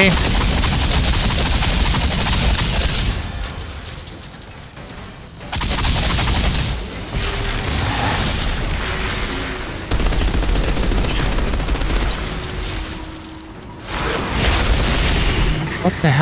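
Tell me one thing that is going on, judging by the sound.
Rapid gunfire crackles in loud bursts.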